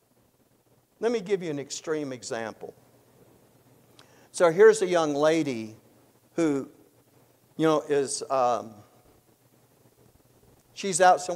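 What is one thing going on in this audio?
An elderly man speaks calmly and deliberately in bursts, with pauses between phrases.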